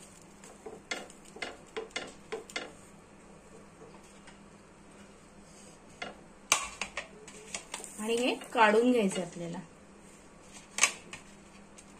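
A plastic spatula scrapes and taps against a metal pan.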